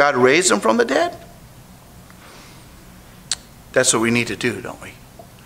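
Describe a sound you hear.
An elderly man speaks slowly and earnestly into a microphone, with pauses.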